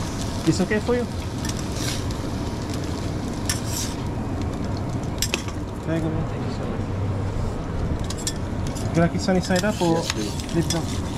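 A metal spatula scrapes and clinks against a hot griddle.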